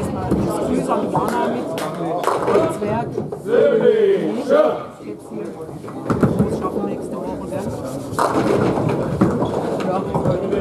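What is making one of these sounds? Bowling balls rumble down lanes in an echoing hall.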